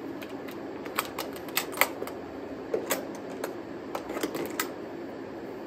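Latches on a guitar case click open.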